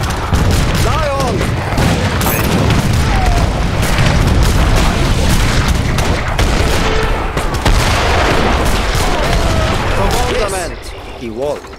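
Musket shots crackle in rapid volleys.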